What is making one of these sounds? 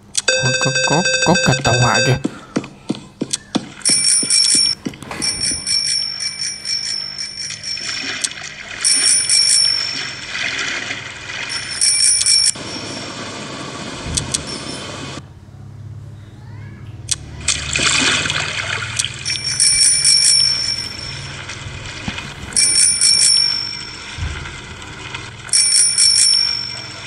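A mobile game plays chiming sound effects and music.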